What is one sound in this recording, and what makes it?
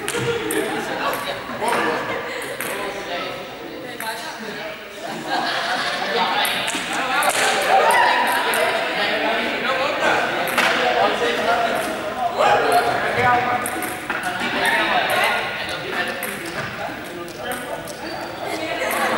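Young people chatter and call out in a large echoing hall.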